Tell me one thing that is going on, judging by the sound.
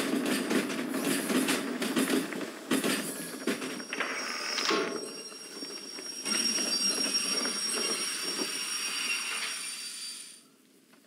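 A steam locomotive hisses and rumbles steadily.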